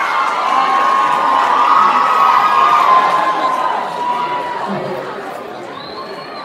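An audience cheers and screams loudly in a large hall, slowly fading.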